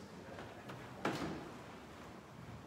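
A woman's footsteps pass close by in a large echoing hall.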